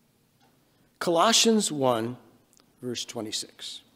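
An elderly man speaks through a microphone, pausing between phrases.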